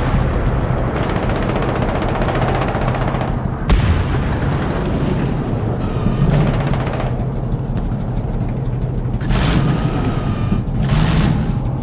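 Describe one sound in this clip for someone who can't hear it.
A tank engine rumbles and idles steadily.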